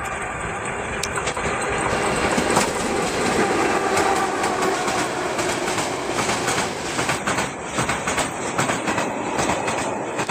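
Freight wagons clatter rhythmically over the rail joints as they pass close by.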